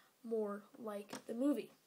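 Plastic toy bricks click and rattle softly as they are handled.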